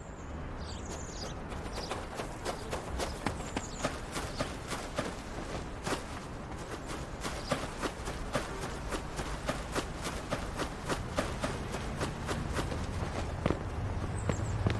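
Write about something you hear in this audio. Footsteps run quickly over grass and pavement.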